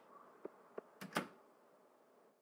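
A door opens and shuts with a thud.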